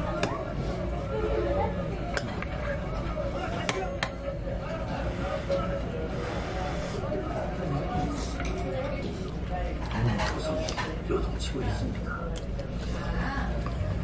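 A young man slurps noodles close by.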